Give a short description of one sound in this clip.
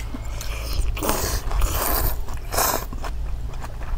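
A young woman slurps noodles loudly.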